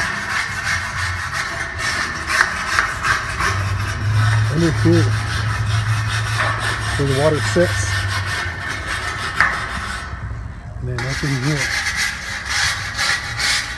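A wire brush scrubs rapidly against a metal panel.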